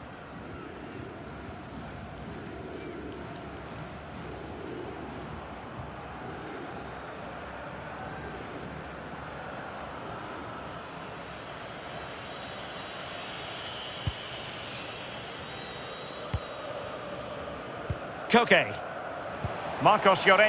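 A stadium crowd roars steadily in a large open arena.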